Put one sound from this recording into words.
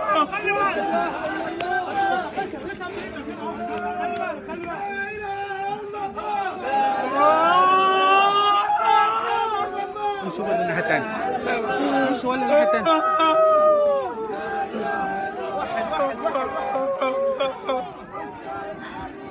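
A crowd of men chants and shouts loudly outdoors.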